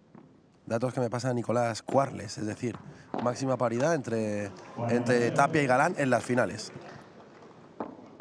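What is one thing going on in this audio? Padel rackets strike a ball with sharp pops in a quick rally.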